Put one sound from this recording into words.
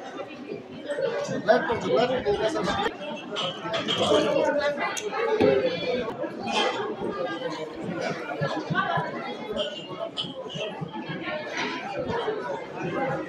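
Many men and women chatter all around.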